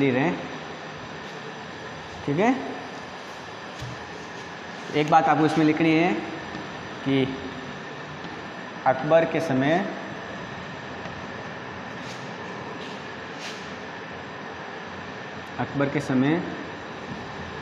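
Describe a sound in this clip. A young man speaks calmly, in short phrases, close by.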